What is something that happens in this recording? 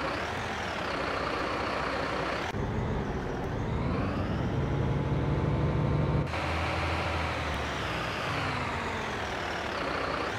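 A fire engine's siren wails, rising and falling.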